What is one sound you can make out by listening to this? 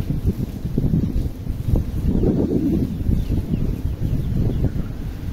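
Water sprays from a garden hose onto wet ground.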